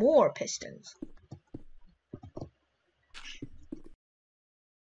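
Blocks are set down with short dull knocks.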